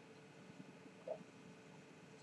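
A glass is set down on a table with a soft knock.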